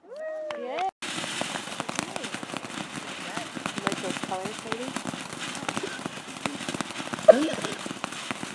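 A firework fountain hisses and roars steadily.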